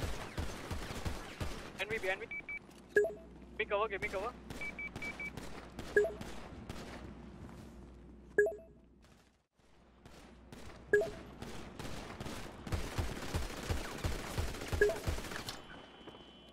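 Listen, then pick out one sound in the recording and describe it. A pistol fires shots in quick succession.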